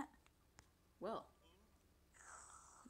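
A cartoon character slurps a drink through a straw.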